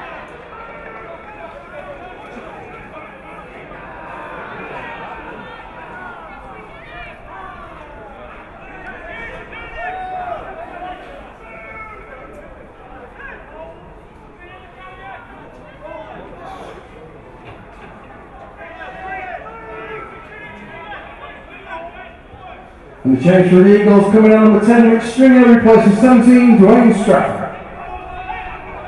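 Spectators chatter and call out nearby outdoors.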